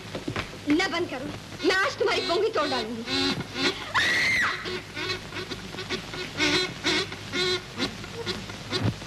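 A woman sings with feeling, close by.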